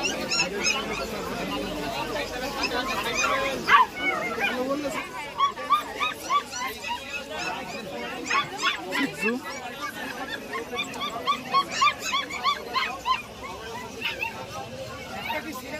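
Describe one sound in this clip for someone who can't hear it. A crowd of men chatters nearby.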